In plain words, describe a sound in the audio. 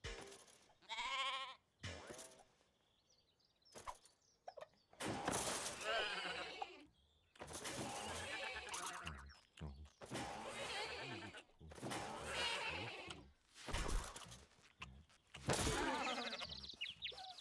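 A sheep bleats.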